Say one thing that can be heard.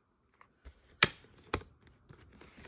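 A plastic case snaps open with a click.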